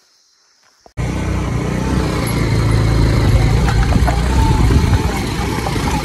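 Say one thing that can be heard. Tyres crunch over loose stones.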